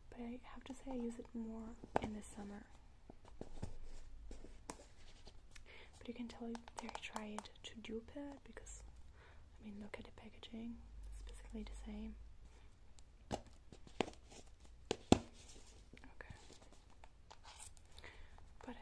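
Long fingernails tap and scratch on a plastic jar.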